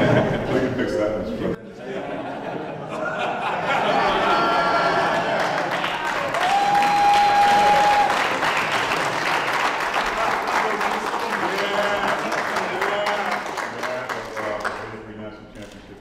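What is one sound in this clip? A crowd of men laughs and chatters close by.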